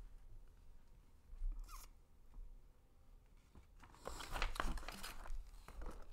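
Paper rustles and crinkles as a sheet is handled.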